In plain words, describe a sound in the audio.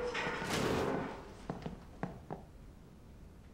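Boots step on a hard floor.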